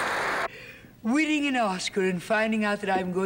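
A woman speaks in a high, animated voice through a microphone.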